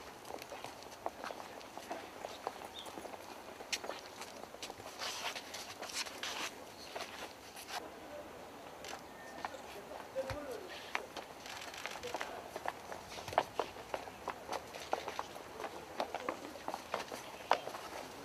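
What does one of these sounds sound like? Footsteps tap and scuff on hard stone outdoors.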